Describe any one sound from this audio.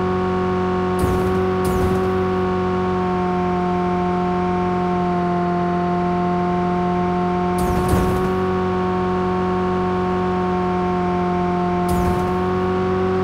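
Car tyres thump over rough ground now and then.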